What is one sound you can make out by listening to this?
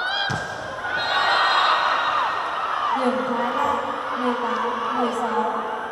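A crowd cheers after a point.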